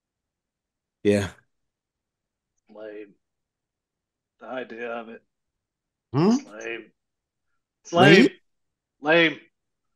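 Men speak in short bursts over an online call.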